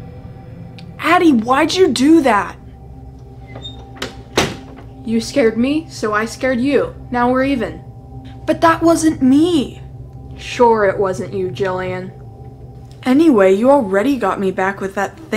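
A teenage girl talks in a worried voice close by.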